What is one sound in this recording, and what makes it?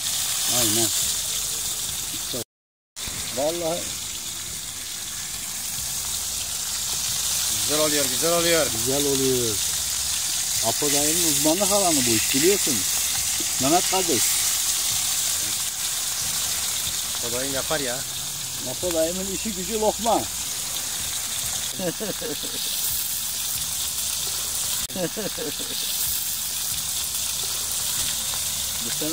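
Fish sizzle steadily in hot oil.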